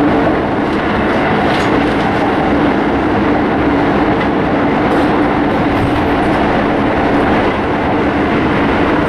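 A train rumbles loudly and steadily along the tracks.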